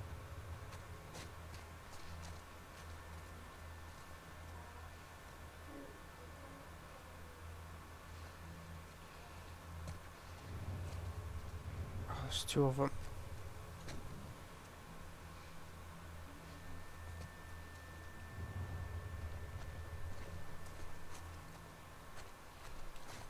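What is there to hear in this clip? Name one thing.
Footsteps rustle softly through tall grass.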